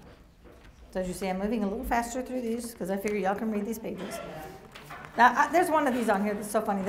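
A middle-aged woman reads aloud with expression through a microphone.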